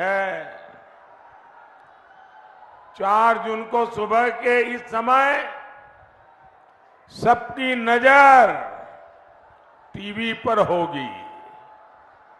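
An elderly man speaks forcefully into a microphone, heard through loudspeakers, in bursts with pauses.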